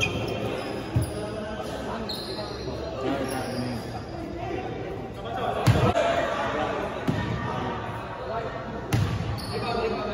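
A basketball is dribbled on a wooden court in a large echoing gym.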